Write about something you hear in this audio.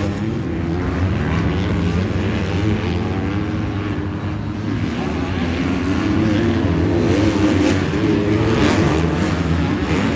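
Several motocross bikes roar and rev around a dirt track outdoors.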